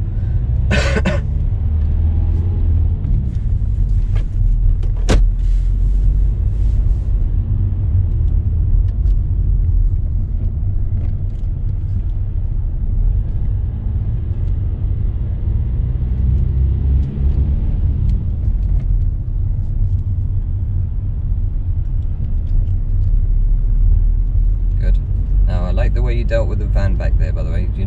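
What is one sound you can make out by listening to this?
A man speaks calmly from close by.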